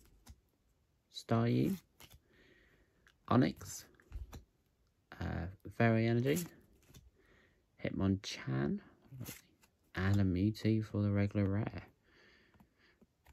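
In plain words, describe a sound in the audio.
Playing cards slide and rustle against each other.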